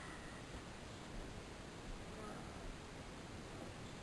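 Footsteps pad softly on a carpet.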